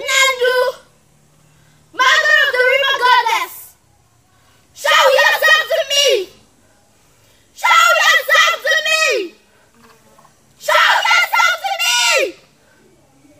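A young woman sings loudly in short phrases, close by.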